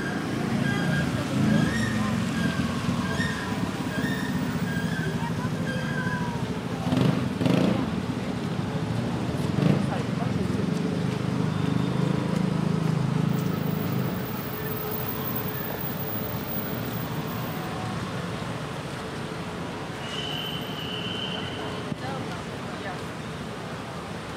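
Tyres hiss on the wet road.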